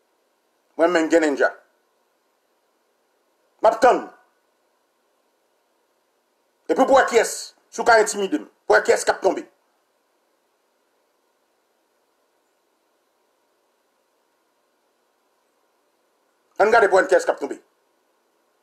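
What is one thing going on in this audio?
A man speaks calmly in short bursts close to a microphone, with pauses of silence between.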